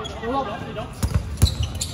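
A ball thuds sharply as it is thrown and hit.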